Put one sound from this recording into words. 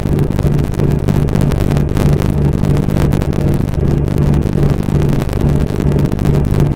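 A diesel semi truck engine drones while cruising on a highway.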